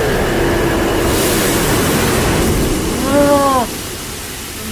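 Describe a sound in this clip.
A deep roaring rumble fills the air, then dies down.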